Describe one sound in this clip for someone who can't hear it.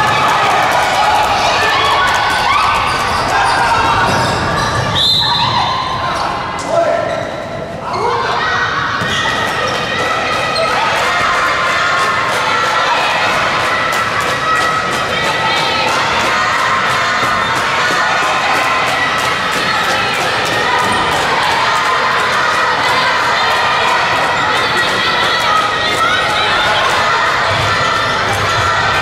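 A crowd shouts and chatters in a large echoing hall.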